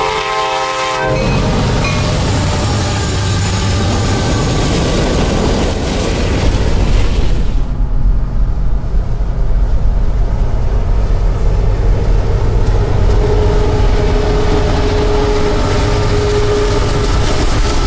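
A freight train rumbles and clatters past close by.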